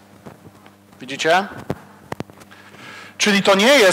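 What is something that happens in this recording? A middle-aged man speaks through a microphone in a large room.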